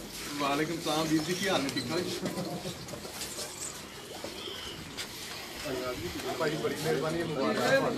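Men talk loudly and with animation nearby, outdoors.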